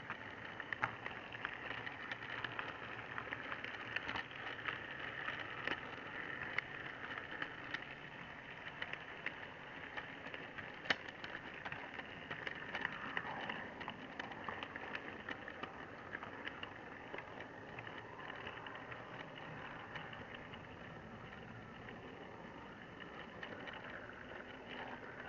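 A small model train motor whirs steadily close by.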